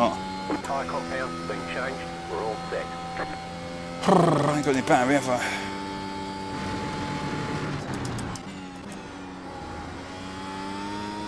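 A race car engine drones steadily and shifts pitch as it changes gear.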